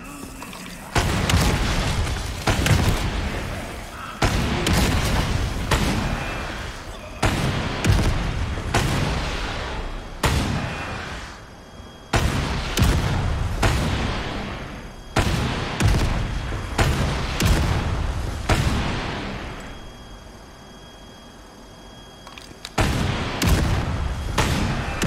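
A rocket launcher fires with a loud boom.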